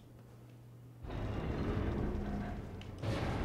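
A heavy door grinds open.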